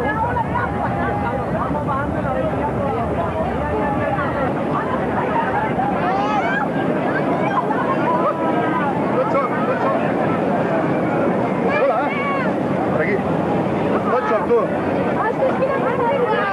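A crowd of men and women chatter and shout excitedly nearby.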